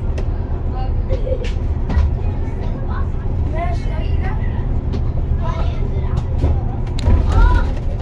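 A vehicle's engine rumbles low and steady.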